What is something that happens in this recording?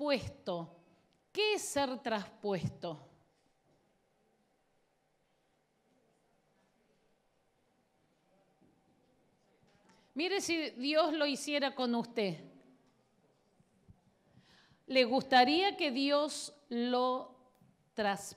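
A middle-aged woman speaks with animation through a microphone, in bursts with long pauses.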